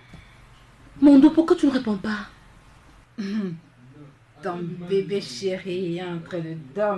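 A young woman speaks calmly into a phone.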